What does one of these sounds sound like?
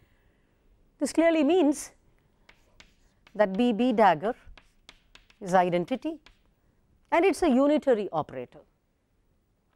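A woman speaks calmly through a microphone in short phrases.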